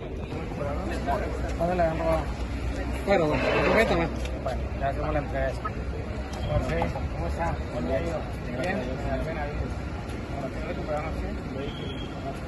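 A man talks with another man up close.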